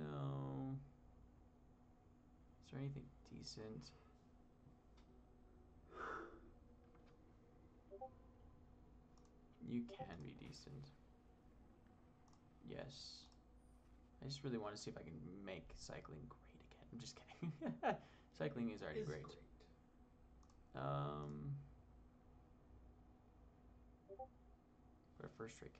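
A young man talks casually into a microphone in bursts, with pauses.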